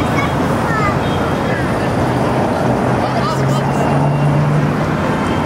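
City traffic rumbles steadily in the background.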